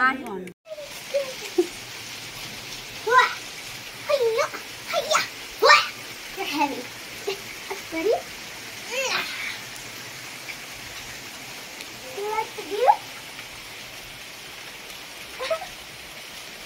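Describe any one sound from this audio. A young girl talks excitedly up close.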